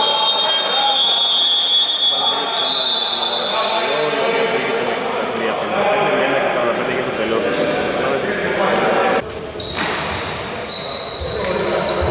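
Young men call out and talk across an echoing hall.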